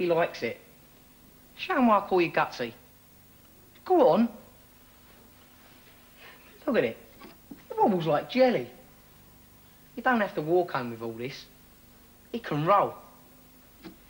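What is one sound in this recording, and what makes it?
A teenage boy talks with a mocking tone, nearby.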